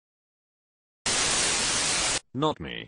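Loud static hisses in a short burst.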